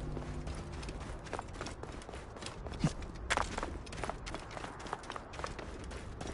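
Hooves clatter and crunch on loose rocky ground.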